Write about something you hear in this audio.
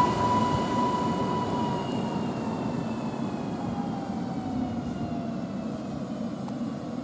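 An electric train's motor whines and slowly drops in pitch as the train moves away.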